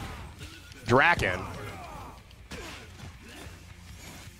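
A sword slashes and strikes with a sharp hit.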